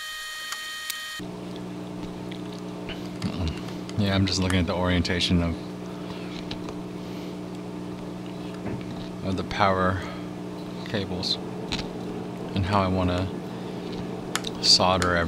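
Hard plastic parts click and tap softly as hands fit them together.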